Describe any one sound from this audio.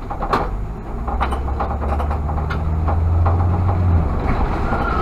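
A bus rumbles past close by.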